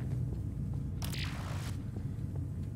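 An object dissolves with a sudden crackling fizz.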